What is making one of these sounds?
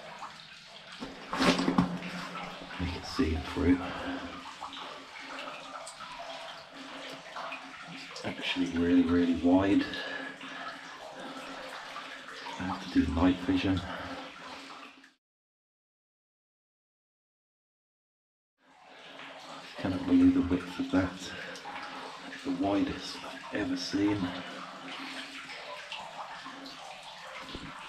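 Footsteps crunch on rocky ground in an echoing tunnel.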